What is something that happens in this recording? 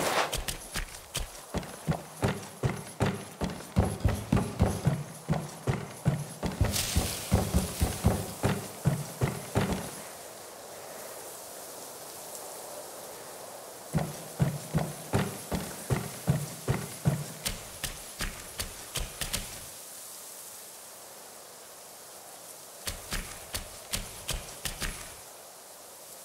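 Footsteps thud quickly across creaking wooden boards.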